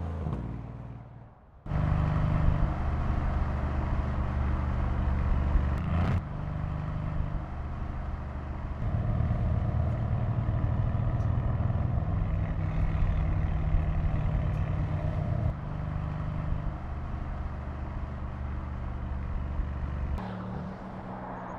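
A car engine roars steadily as the car speeds along a road.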